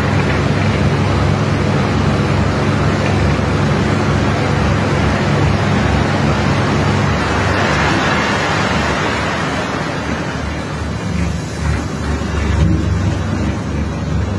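Water hisses from a hose spraying onto wet gravel.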